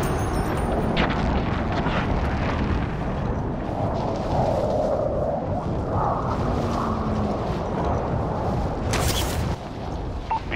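Wind rushes past during a freefall.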